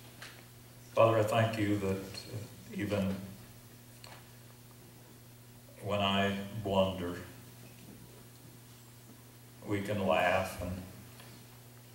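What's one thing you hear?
An elderly man reads aloud slowly through a microphone, with long pauses.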